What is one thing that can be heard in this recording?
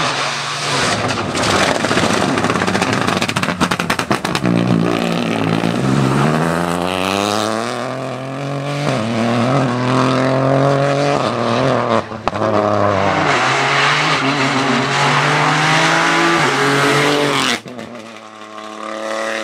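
A rally car engine roars loudly, revving up and down through the gears as it races past.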